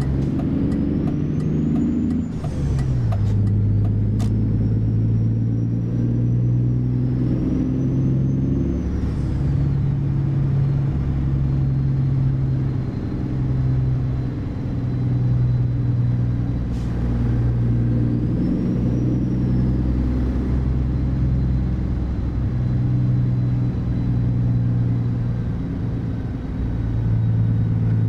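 A truck engine hums low and steady, rising and falling as it changes gears.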